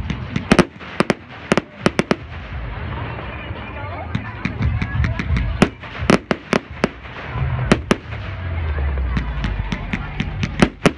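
Fireworks bang and crackle overhead, outdoors.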